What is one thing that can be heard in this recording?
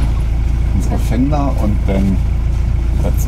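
An elderly man speaks briefly nearby.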